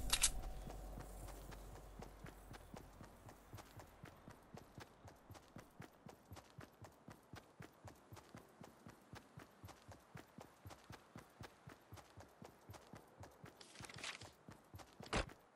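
Quick footsteps run steadily over grass.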